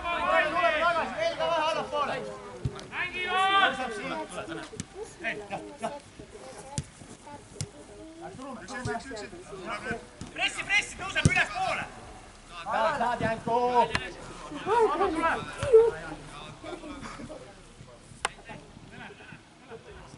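Men shout to each other outdoors.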